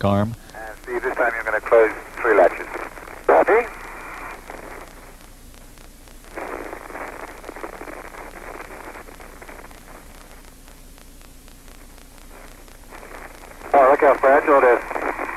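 A man speaks calmly over a crackly radio link.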